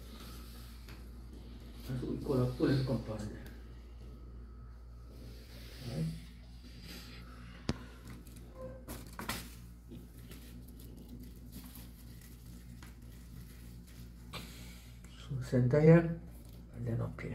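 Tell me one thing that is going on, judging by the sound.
Thin plastic sheeting crinkles and rustles as hands handle it.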